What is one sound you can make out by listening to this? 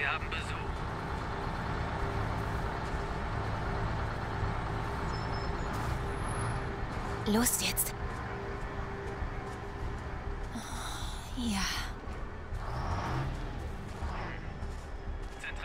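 Footsteps crunch softly on grass and leaves.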